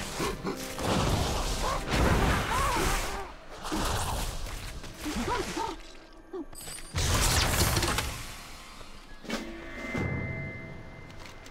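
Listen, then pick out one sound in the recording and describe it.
Fighting sounds from a video game clash and thud loudly.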